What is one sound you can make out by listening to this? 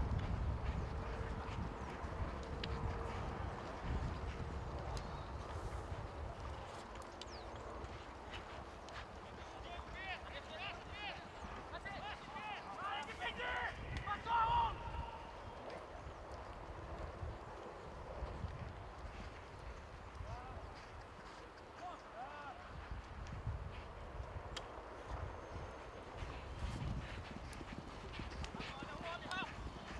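Horses' hooves thud on grass in the distance.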